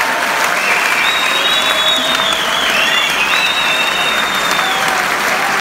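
Whistles shrill from the crowd.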